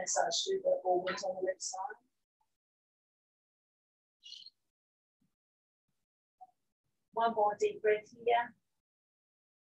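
A woman speaks calmly, as if instructing, close by.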